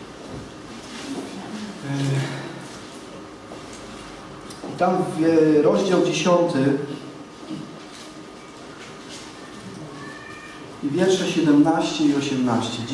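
A young man speaks calmly into a microphone, reading aloud.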